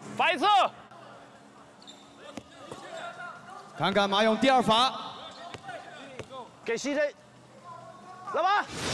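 Spectators shout and cheer loudly in a large hall.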